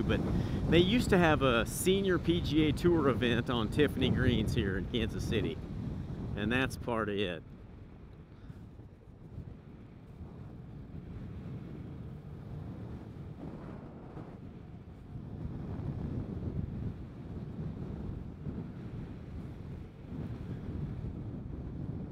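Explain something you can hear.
Wind rushes past while riding outdoors.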